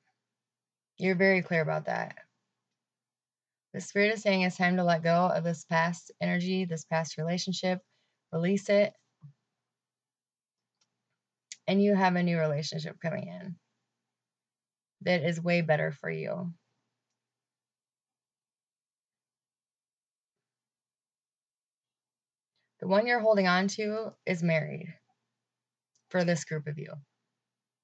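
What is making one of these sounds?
A young woman speaks calmly and close to a microphone, in bursts with long pauses.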